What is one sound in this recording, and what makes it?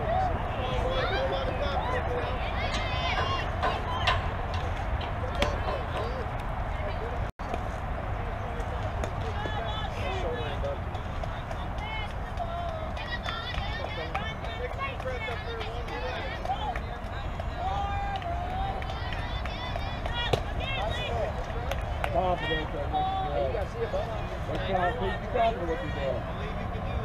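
Young girls call out and cheer outdoors.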